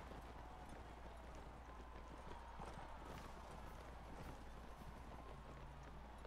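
Horses' hooves thud on grass as riders gallop together.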